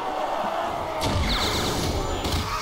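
An electric blast crackles and booms.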